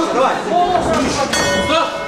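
Gloved punches thud in a boxing ring.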